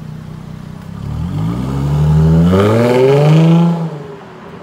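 A sports car engine revs loudly and drops back.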